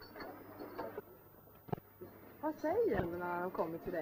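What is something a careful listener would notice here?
A cash register clicks as keys are pressed.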